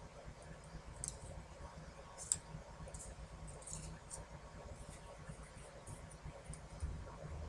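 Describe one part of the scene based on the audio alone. Small paper squares tap softly as they are set down on a table.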